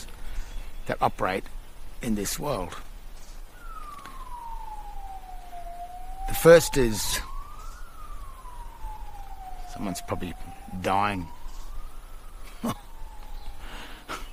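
A middle-aged man talks calmly and close by, in short bursts with pauses.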